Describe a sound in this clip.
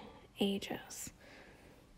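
A fingertip brushes softly against taut fabric.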